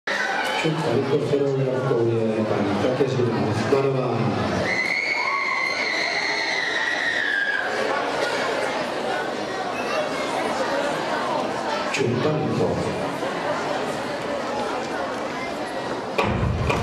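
A crowd of spectators chatters and murmurs in a large echoing hall.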